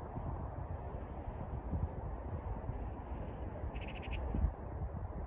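Wind blows hard and rumbles across the microphone outdoors.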